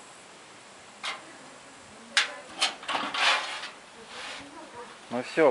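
A bear cub knocks and scrapes against a metal wheelbarrow.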